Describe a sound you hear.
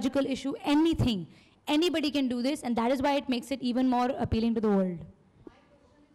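A young woman talks into a microphone with animation.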